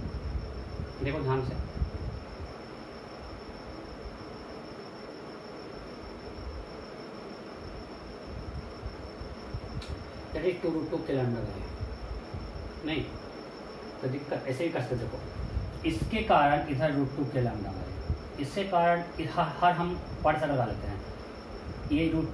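A man speaks calmly nearby, explaining.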